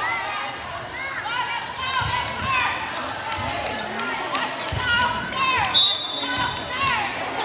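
Sneakers squeak sharply on a gym floor, again and again.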